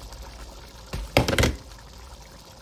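A glass lid clanks off a metal pot.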